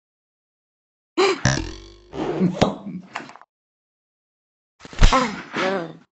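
A toy gun fires with a short pop.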